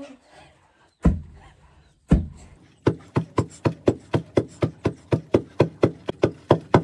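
A wooden pestle pounds grain in a mortar with steady, rhythmic thuds.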